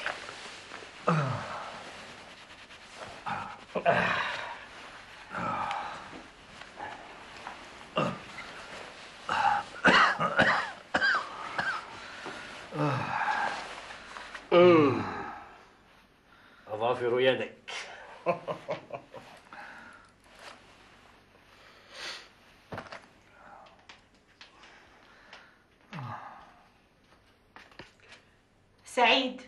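An older man speaks weakly, close by.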